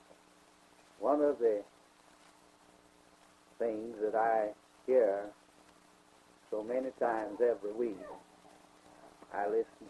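An elderly man speaks slowly in short phrases, heard through an old, hissy recording.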